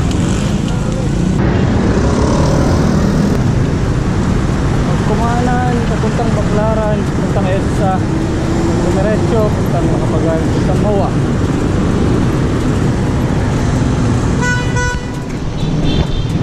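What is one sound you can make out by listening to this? Motorbike and car engines rumble in traffic nearby.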